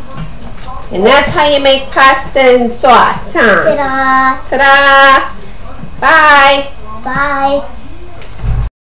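A young girl speaks and cheers excitedly nearby.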